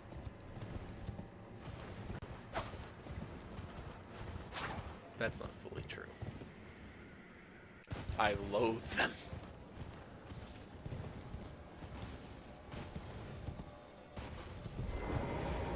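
A horse gallops with hooves thudding on dirt.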